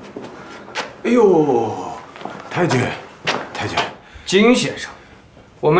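A man speaks loudly and sharply nearby.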